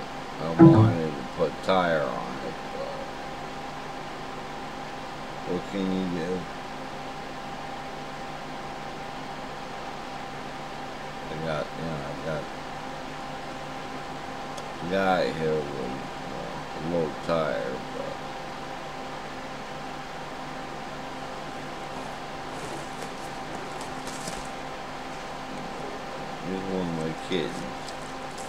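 A middle-aged man talks calmly and close by, in short bursts with pauses.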